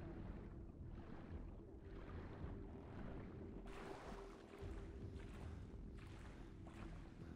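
Water swirls and splashes with steady swimming strokes, muffled at first and then clear.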